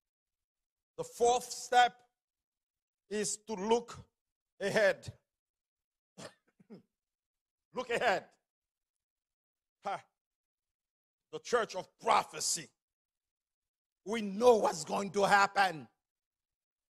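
A man preaches with animation into a microphone, in bursts with pauses between.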